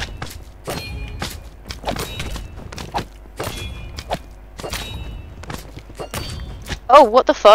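Sword blows land with short, sharp smacks in quick succession.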